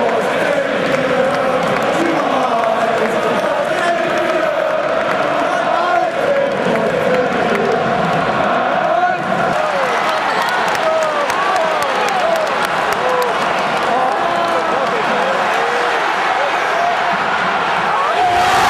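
A large stadium crowd sings and chants loudly, echoing all around.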